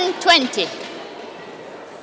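A racket strikes a shuttlecock sharply.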